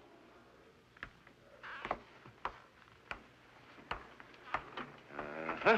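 Footsteps knock on a hard floor.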